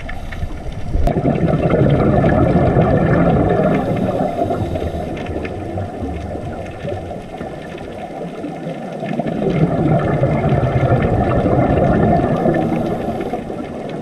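Scuba bubbles gurgle and rumble underwater in loud bursts.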